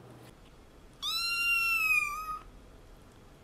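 A kitten meows in high cries.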